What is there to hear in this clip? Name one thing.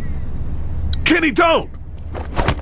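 A man shouts a warning urgently.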